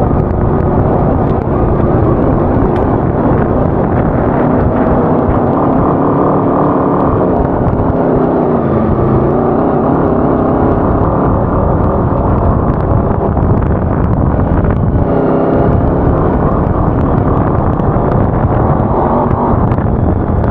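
Wind buffets the microphone in heavy gusts.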